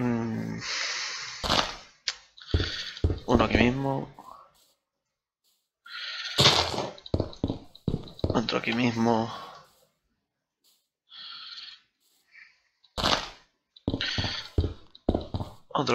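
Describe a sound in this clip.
Wooden blocks thud softly as they are placed.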